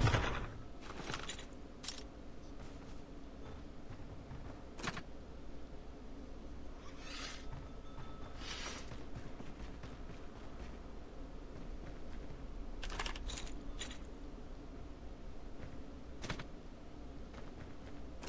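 Footsteps tap on wooden boards.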